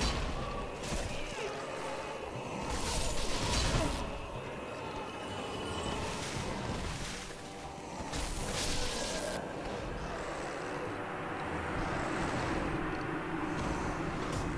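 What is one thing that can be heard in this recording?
Heavy weapons clash and strike in a fight.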